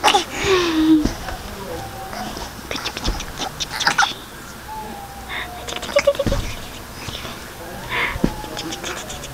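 A baby coos and babbles up close.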